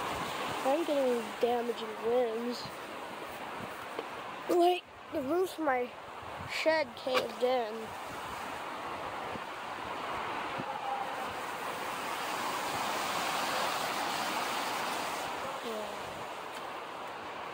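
Trees rustle and thrash in the wind.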